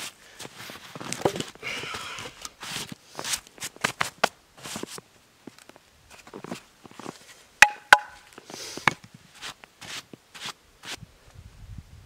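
Wooden sticks clatter and knock together as they are gathered.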